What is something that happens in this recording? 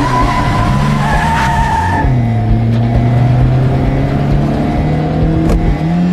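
A car engine roars steadily.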